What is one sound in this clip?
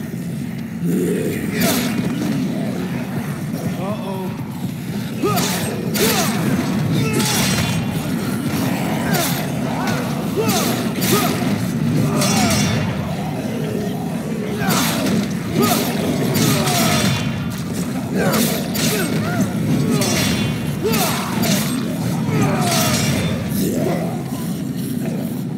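A spear strikes zombies with wet thuds.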